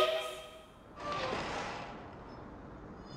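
A metal shed door slides open with a scraping rattle.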